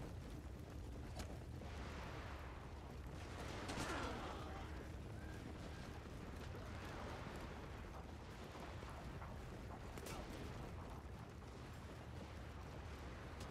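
Many soldiers march together with a dull, steady tramping of feet and clinking armour.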